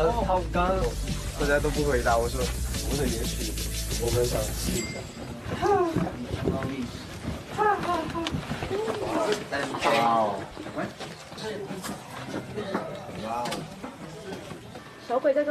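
Young men talk with animation, close by.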